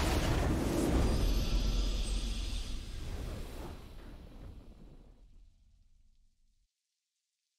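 A triumphant game fanfare swells and fades away.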